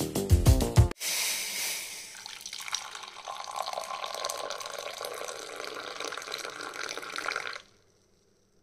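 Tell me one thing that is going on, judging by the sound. A hot liquid pours steadily into a mug.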